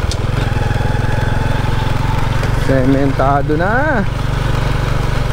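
A motorbike engine rumbles steadily close by.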